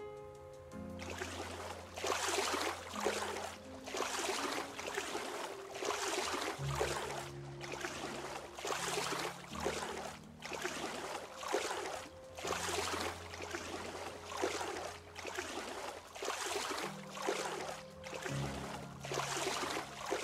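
Water splashes with steady swimming strokes.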